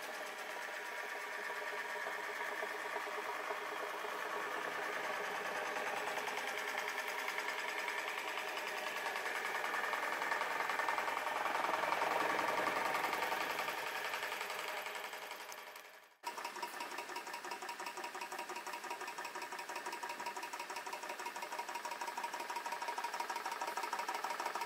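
A small model engine runs with a rapid, steady chuffing clatter.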